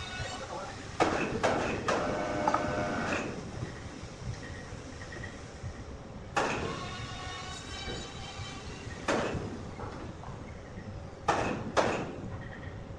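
A heavy wooden slab knocks and thuds against timber.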